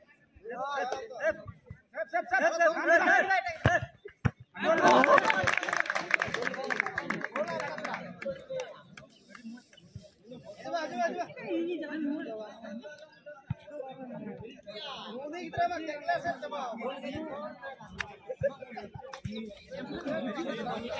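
A crowd of young men chatter and shout outdoors.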